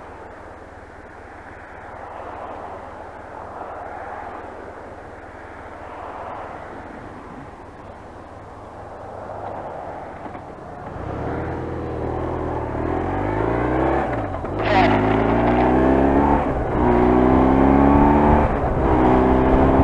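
A motorcycle engine hums and then revs up as it accelerates.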